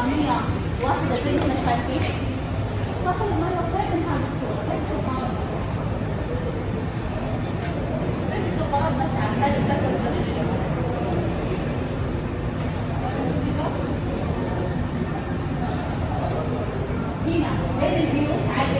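Several adults chat quietly nearby in an echoing room.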